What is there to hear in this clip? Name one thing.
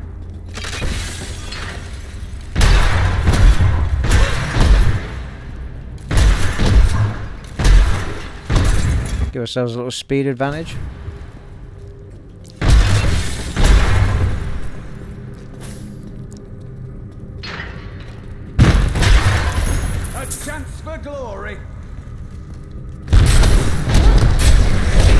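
Objects smash and crumble in repeated loud crashes.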